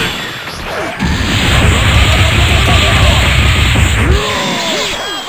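Punches and kicks thud in rapid blows.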